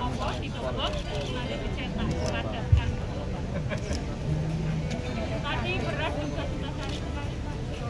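A crowd of men and women talk and chatter nearby.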